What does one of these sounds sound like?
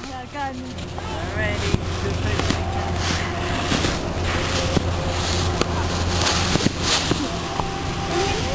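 Footsteps crunch in snow close by.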